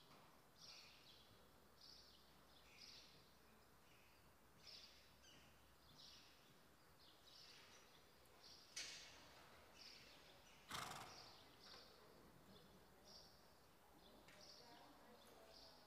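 A horse's hooves thud softly on sand at a trot.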